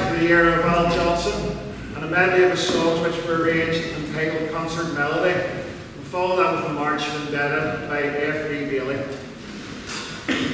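A man speaks calmly and clearly into a microphone in an echoing hall.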